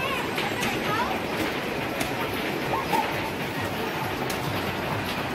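Arcade machines chime and beep in a noisy, busy hall.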